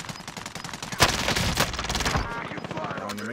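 Rapid gunfire rattles in a short burst.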